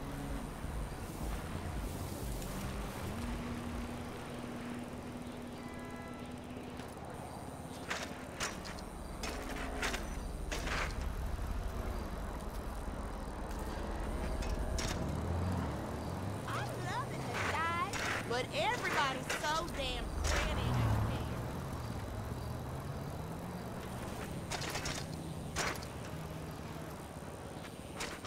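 Bicycle tyres roll steadily over pavement.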